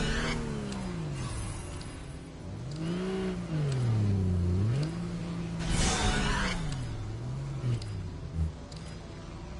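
A car engine revs up and down, then dies away.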